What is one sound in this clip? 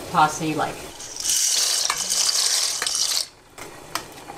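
Dry pasta pours and splashes into boiling water.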